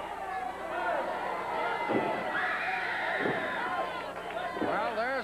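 A crowd cheers and shouts in a large hall.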